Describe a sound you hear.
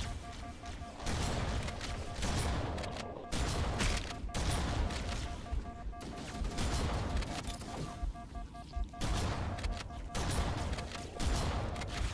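Bursts of rapid gunfire ring out.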